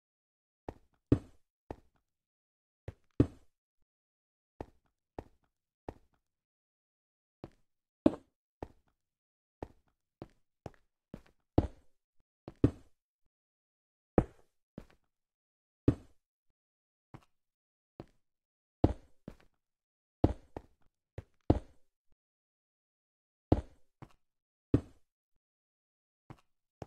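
Blocks are placed with short, sharp knocks at irregular intervals.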